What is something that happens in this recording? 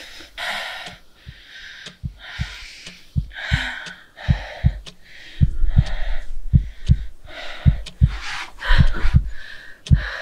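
A young woman whispers softly, very close.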